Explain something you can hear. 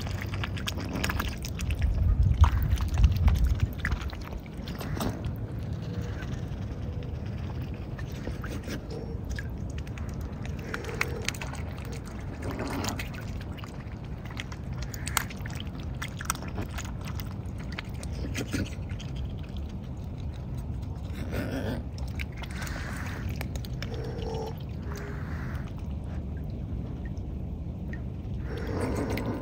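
A swan dabbles and splashes softly in water.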